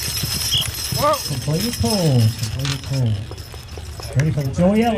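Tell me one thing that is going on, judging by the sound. A man calls out loudly to the mules.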